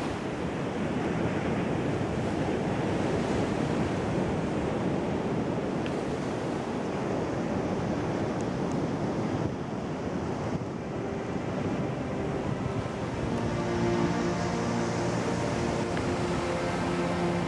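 Wind blows steadily across an open outdoor space.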